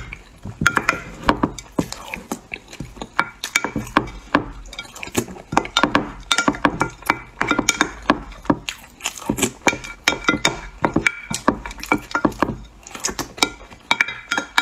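A wooden spoon scrapes and crunches through hard ice cream close up.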